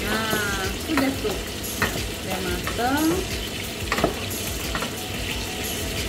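A wooden spoon scrapes and stirs food in a pot.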